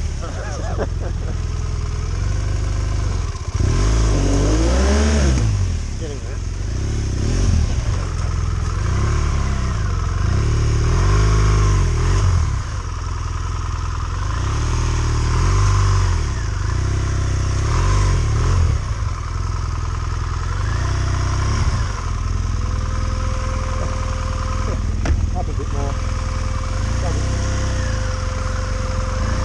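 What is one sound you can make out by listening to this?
A motorcycle engine rumbles close by, revving up and down again and again.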